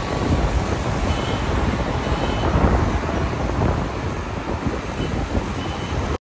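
Car engines and tyres hum steadily on a road.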